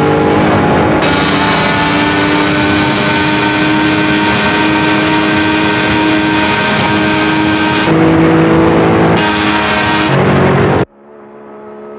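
A racing car engine screams at a high, steady pitch.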